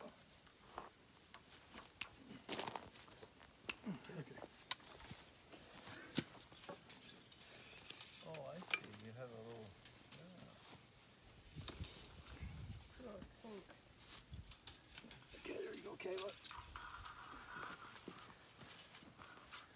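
Wire fencing rattles and clinks against a wooden post.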